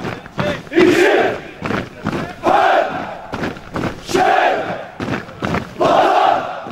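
A group of men chant loudly in unison while marching outdoors.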